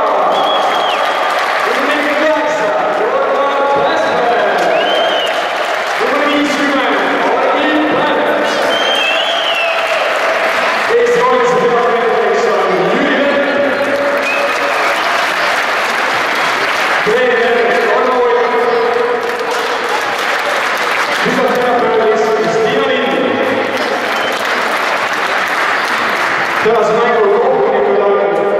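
A group of men sings together in a large echoing hall.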